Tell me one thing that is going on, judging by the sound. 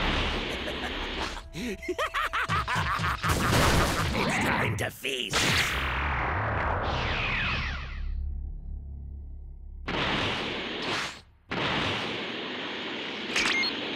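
An energy blast whooshes and crackles.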